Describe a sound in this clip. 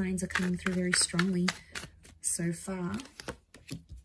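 A deck of cards rustles in hands.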